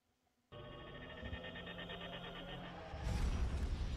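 A spaceship engine hums with a buzzing tone.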